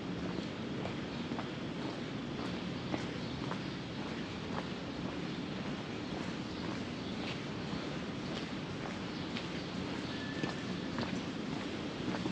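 Footsteps tap steadily on a brick sidewalk.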